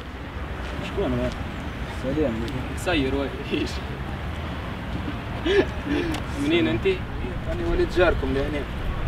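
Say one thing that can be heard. A young man talks outdoors.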